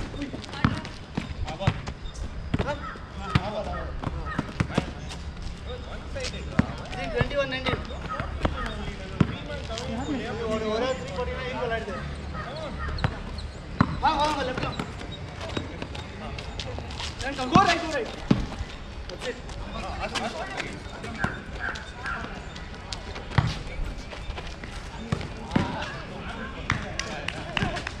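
Sneakers squeak and scuff on the court.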